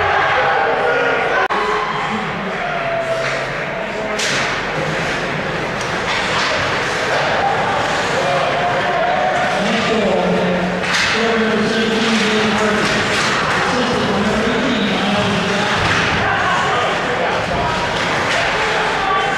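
A crowd cheers and shouts loudly in an echoing arena.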